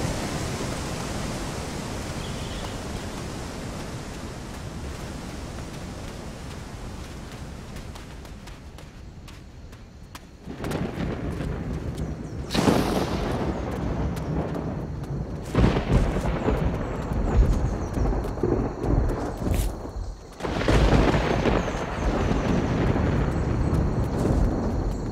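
Bare feet run quickly over sand and grass.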